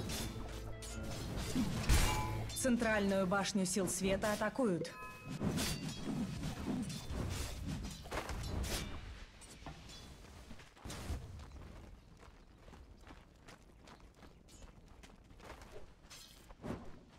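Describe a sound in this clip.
Game spell effects and attacks crackle and clash in quick bursts.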